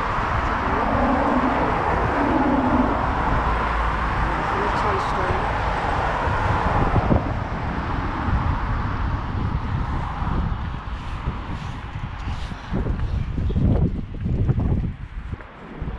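Wind gusts outdoors.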